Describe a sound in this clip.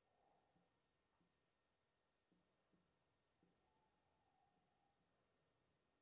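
A marker squeaks and taps faintly on a whiteboard.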